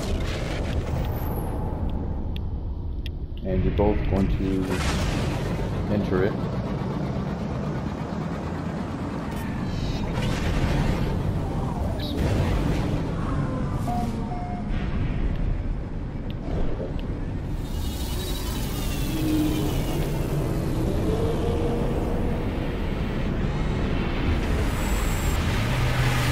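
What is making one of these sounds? A spacecraft engine hums and roars steadily.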